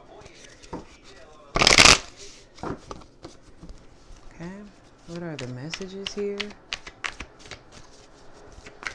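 Cards rustle and tap as a hand handles them.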